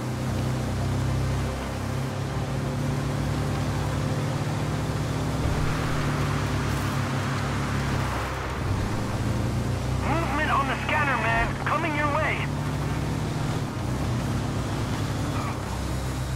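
A buggy's engine drones steadily, rising and falling as it drives.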